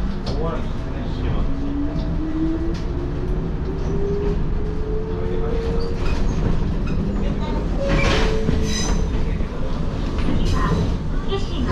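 Train wheels clack over rail joints and points.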